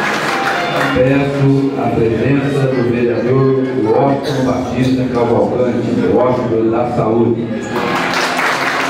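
An elderly man reads out through a microphone in an echoing hall.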